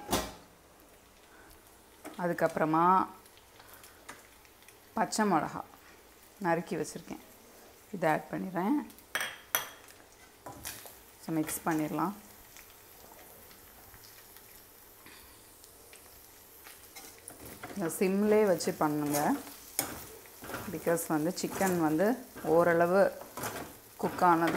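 A metal spatula scrapes and stirs food in a wok.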